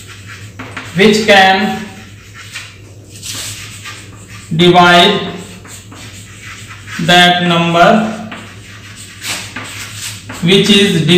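A man speaks calmly and clearly, close by, in short phrases with pauses.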